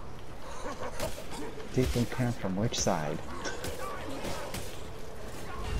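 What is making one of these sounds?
Weapons slash and thud against bodies in a close fight.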